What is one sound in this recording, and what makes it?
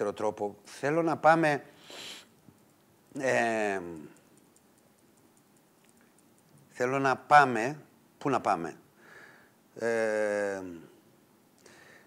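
An elderly man speaks in short bursts with pauses, close to a microphone.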